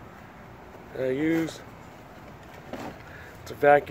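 A plastic case knocks and clatters as it is opened.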